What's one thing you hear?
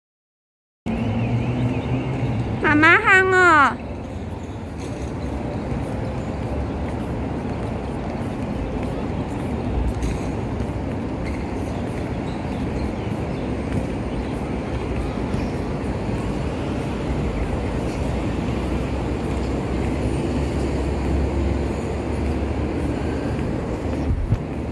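A small child's footsteps patter softly on a hard outdoor court.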